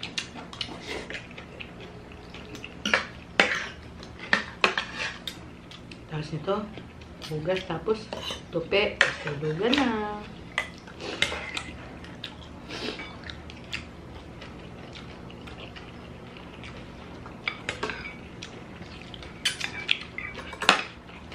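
Metal spoons and forks clink against plates and a glass bowl.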